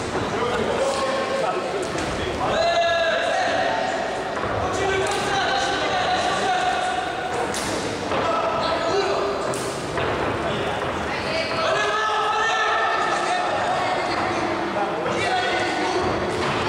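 A crowd shouts and cheers loudly in an echoing hall.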